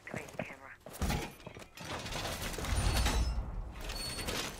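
Glass shatters and shards scatter.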